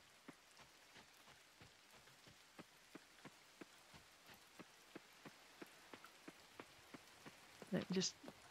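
Footsteps patter quickly and evenly along a path.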